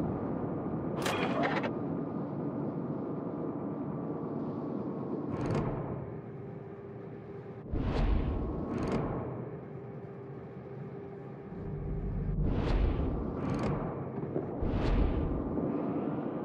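Heavy naval guns fire in loud booming blasts.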